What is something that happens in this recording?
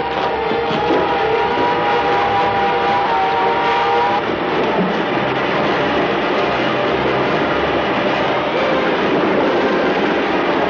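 Water roars and rushes loudly.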